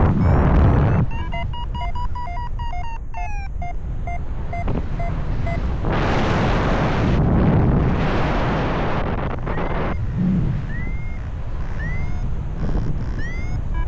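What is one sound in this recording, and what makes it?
Wind rushes loudly and steadily past, outdoors in flight.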